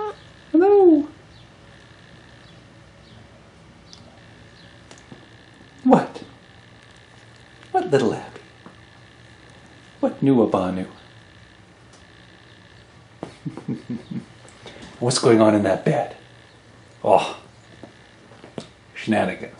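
Cats and kittens meow loudly, again and again, close by.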